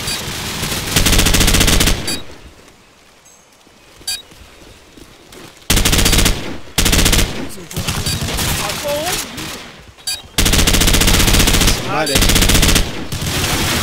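Rifle shots fire in loud rapid bursts.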